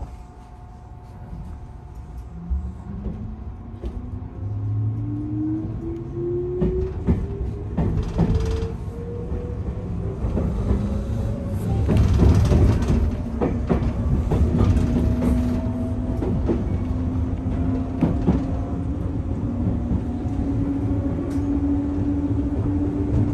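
Train wheels clatter and rumble over the rails.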